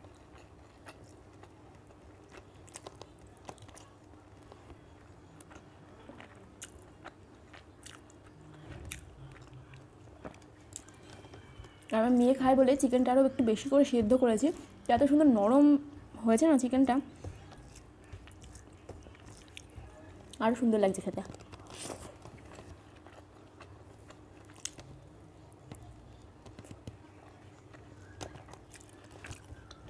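A young woman chews and smacks her lips close by.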